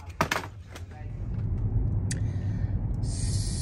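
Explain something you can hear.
A car engine rumbles low and steady inside a car.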